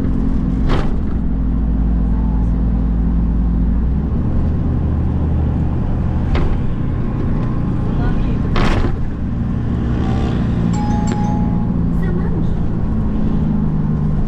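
A motorcycle engine hums steadily up close while riding along a road.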